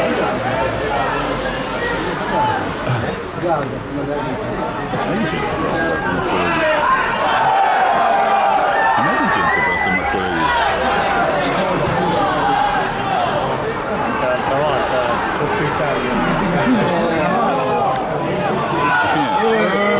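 Men shout and call to each other across an open field.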